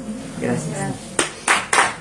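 A woman speaks briefly and calmly nearby.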